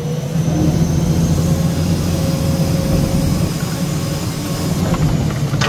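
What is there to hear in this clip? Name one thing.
A diesel engine rumbles steadily close by.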